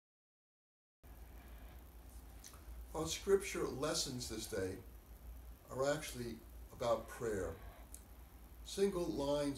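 An elderly man speaks calmly and reads aloud, close to a microphone.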